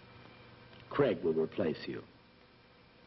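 A middle-aged man speaks a few words.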